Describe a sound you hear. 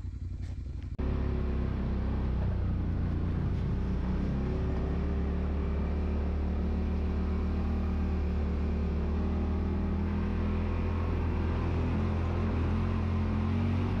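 An off-road vehicle's engine rumbles steadily as it drives along.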